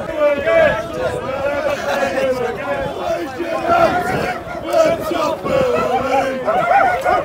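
A crowd of men sings a chant loudly outdoors.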